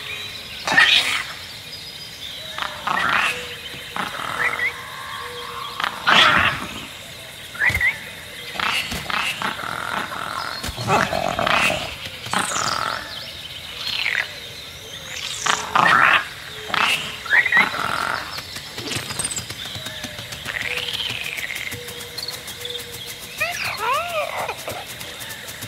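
A small creature chirps and squeals in short bursts.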